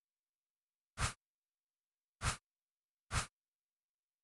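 A game menu makes short soft swishing sounds as items slide past.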